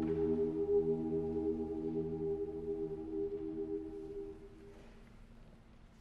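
A large choir sings a sustained chord in a reverberant hall, then the sound dies away.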